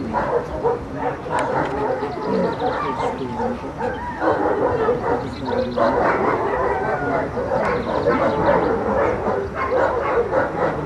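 Several women and men talk outdoors at a distance.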